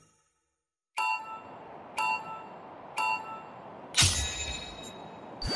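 Three short electronic beeps count down, then a louder chime sounds.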